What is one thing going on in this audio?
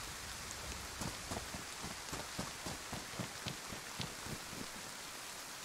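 Footsteps crunch on dry grass and gravel.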